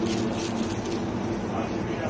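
A knife slices through a block of butter.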